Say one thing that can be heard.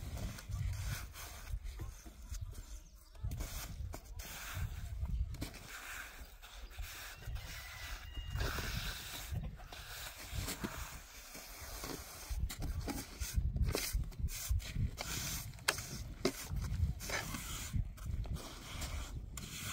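A trowel scrapes and smooths wet cement.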